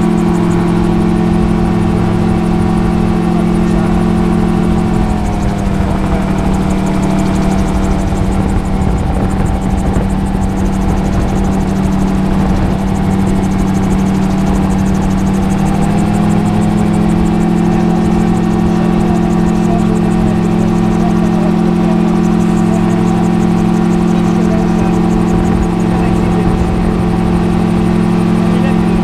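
A small aircraft engine drones loudly and steadily close by, dropping in pitch briefly and then rising again.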